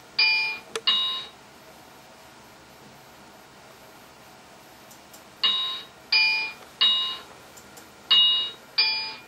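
A computer game plays short bright chiming tones.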